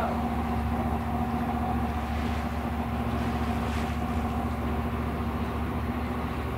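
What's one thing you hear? Water rushes and splashes around a speeding boat's hull.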